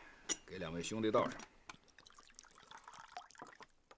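Liquid pours into a bowl.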